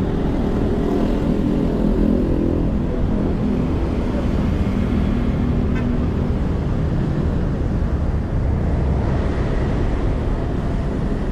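Traffic rumbles steadily in the distance outdoors.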